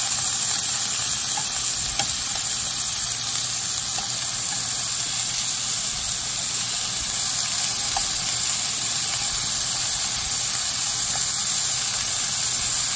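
Meat sizzles steadily in a hot pan.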